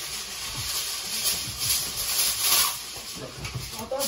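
A plastic bag rustles close by.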